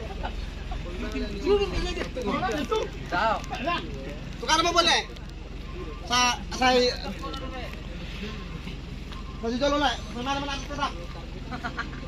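Young men talk and call out outdoors.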